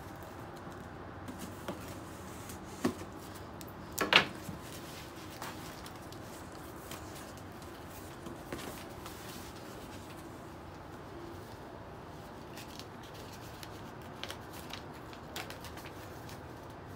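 Cardboard rustles and crinkles close by as a box is handled.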